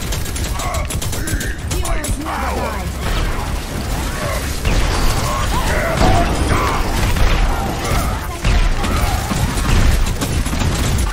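Energy weapons fire in rapid bursts.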